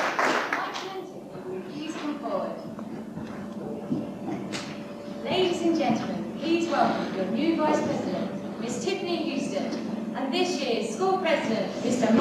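Teenage actors speak their lines loudly, heard from a distance in an echoing hall.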